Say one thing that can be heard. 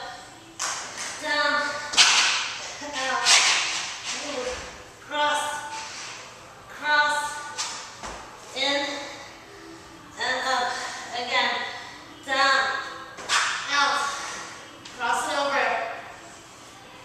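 A young woman talks calmly and clearly through a microphone.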